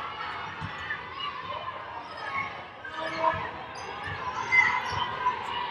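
A basketball thumps on a wooden court as it is dribbled.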